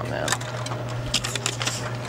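A photocopier lid clatters as it is lifted.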